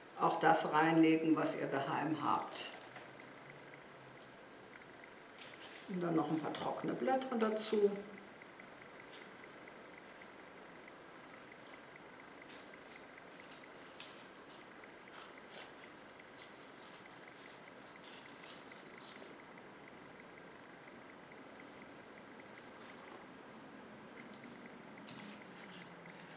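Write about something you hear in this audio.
Pine branches and leaves rustle softly as hands handle them.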